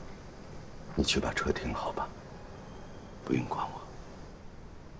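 An older man speaks calmly and firmly.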